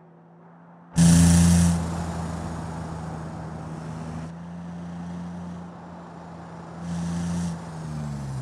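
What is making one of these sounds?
A car engine hums steadily as it drives past.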